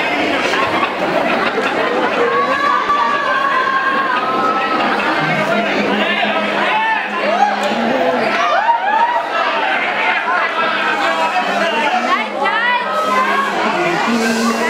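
A group of young people sings loudly together.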